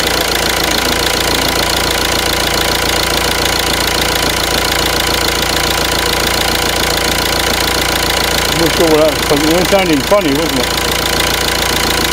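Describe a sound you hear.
A common-rail diesel car engine idles with a steady clatter.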